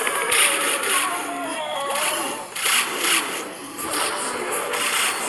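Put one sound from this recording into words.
Rapid zapping and bursting game sound effects go off again and again.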